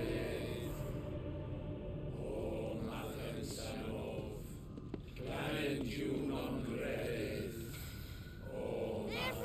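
A man proclaims loudly and theatrically, with echo.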